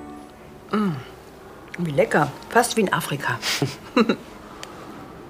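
A woman speaks softly and calmly close by.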